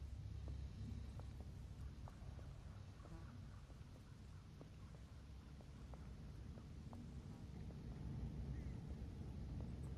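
Footsteps thud on a wooden bridge.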